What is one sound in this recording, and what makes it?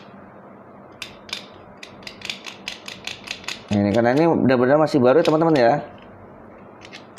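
Small plastic parts click and tap as they are handled up close.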